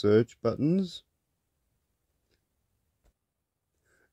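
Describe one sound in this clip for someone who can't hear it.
A plug is pulled out of a socket with a soft click.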